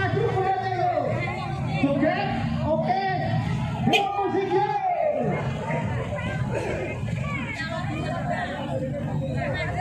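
A crowd of men and women talk and call out nearby outdoors.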